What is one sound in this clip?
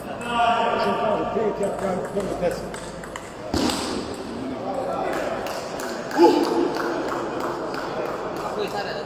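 A table tennis ball clicks back and forth off paddles and the table in a large echoing hall.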